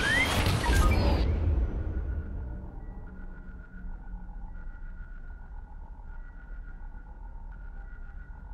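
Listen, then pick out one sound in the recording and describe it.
A starfighter engine hums low and steady.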